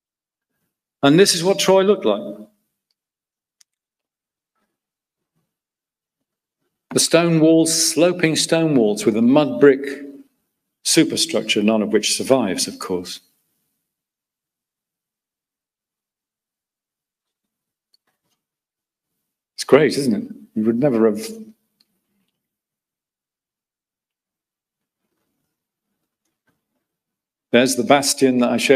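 A middle-aged man speaks calmly into a microphone, lecturing with pauses.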